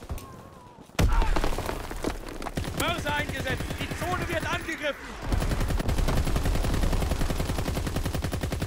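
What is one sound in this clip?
A machine gun fires rapid, loud bursts.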